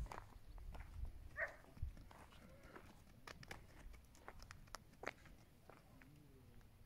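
Hooves thud and patter on dry ground as animals trot about.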